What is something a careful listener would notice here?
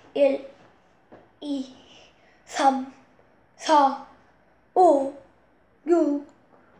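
A young boy speaks close by in short, separate words with pauses between them.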